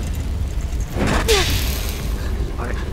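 A heavy metal door scrapes as it is pushed open.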